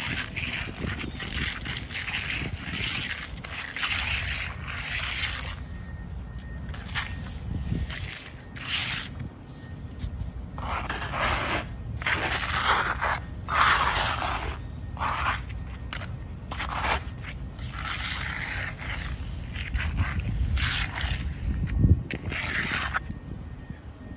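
A trowel scrapes and rasps over a rough wet surface in repeated strokes.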